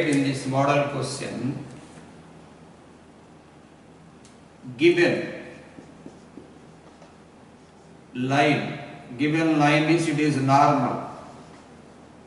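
A man speaks in a lecturing tone, pausing between phrases, in a slightly echoing room.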